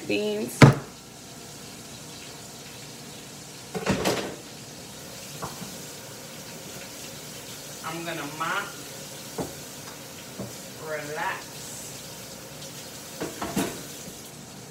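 Objects knock on a countertop.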